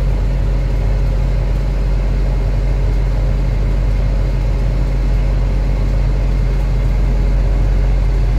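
An excavator's hydraulics whine as its arm moves.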